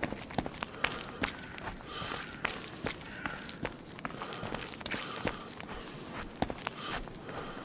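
Footsteps crunch steadily through dry leaves and grass.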